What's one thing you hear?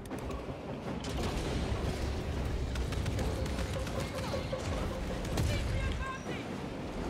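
Explosions rumble and boom in a battle.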